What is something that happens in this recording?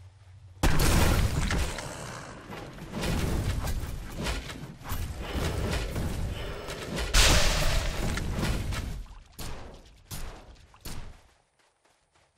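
Spells and weapon blows crash and crackle in a game battle.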